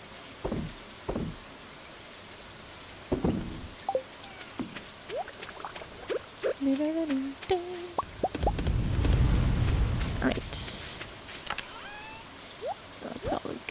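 Short soft clicks and pops sound now and then.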